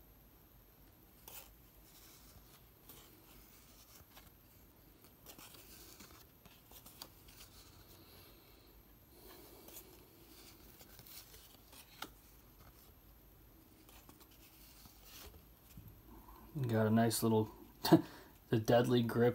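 Cardboard trading cards rustle and slide against each other as they are shuffled by hand.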